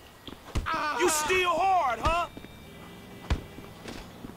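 Heavy thuds of punches and kicks land on a body.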